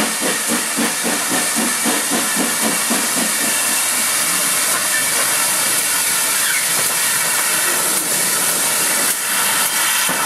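A steam locomotive chuffs in a steady rhythm as it draws near.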